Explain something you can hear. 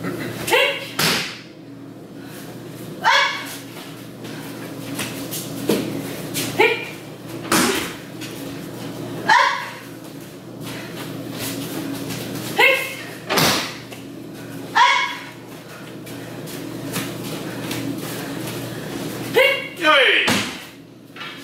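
Bodies thud onto a padded floor as people are thrown.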